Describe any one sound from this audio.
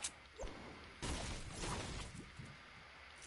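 A pickaxe strikes wood with dull, repeated thuds.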